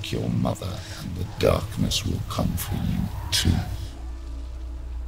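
A young woman speaks intensely and close up.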